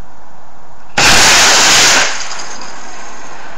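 A small rocket motor ignites with a loud, rushing hiss that fades after about a second.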